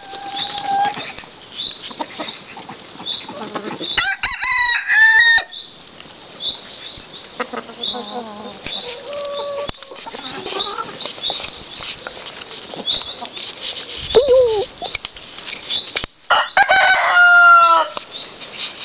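Ducks quack.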